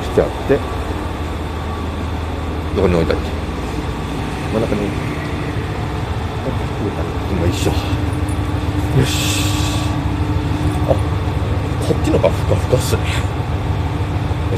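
A train rumbles along the tracks with a steady low drone.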